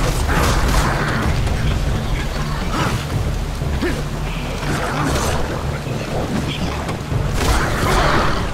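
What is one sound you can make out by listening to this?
Deep game music plays steadily.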